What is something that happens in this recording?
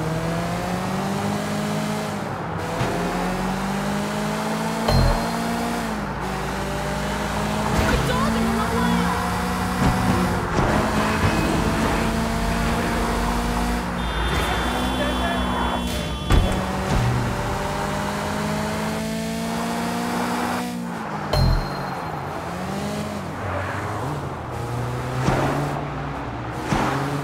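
A car engine revs hard, its pitch climbing and dropping with each gear change.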